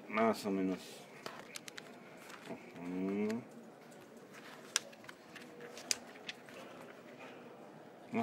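Magazine pages rustle and flap as they are turned by hand.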